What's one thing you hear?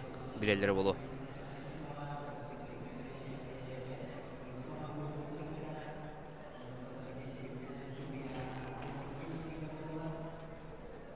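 A crowd murmurs softly in a large hall.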